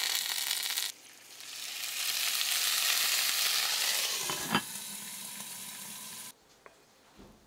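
Water hisses loudly as it is poured into a hot pan.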